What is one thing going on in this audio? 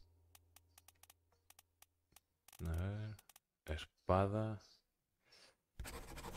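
Soft menu clicks tick as a selection moves up and down a list.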